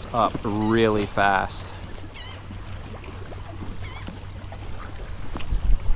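Small waves lap against rocks.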